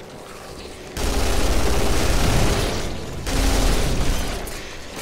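A gun fires rapidly in a game.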